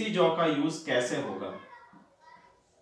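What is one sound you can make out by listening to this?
A man speaks clearly into a close microphone, explaining.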